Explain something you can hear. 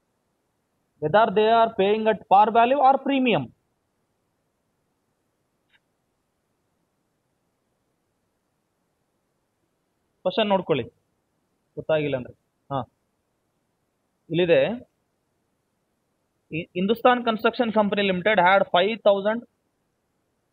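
A man speaks calmly into a microphone, explaining in short bursts with pauses.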